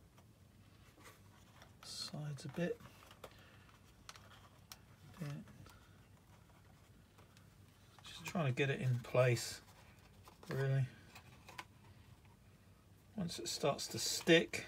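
Thin card rustles and taps softly as it is handled.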